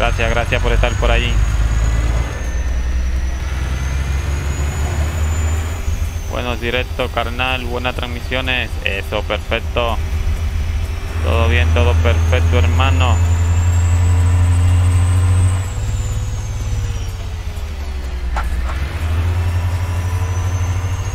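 A semi truck's diesel engine drones while cruising.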